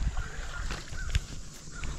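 A small fish splashes at the water's surface.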